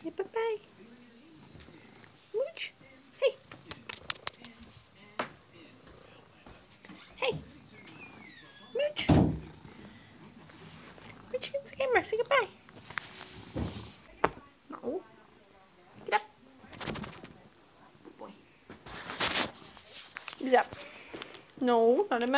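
A cat meows close by, again and again.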